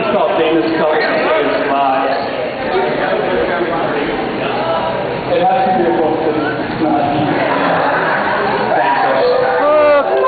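A crowd of adults chatter loudly nearby in a room.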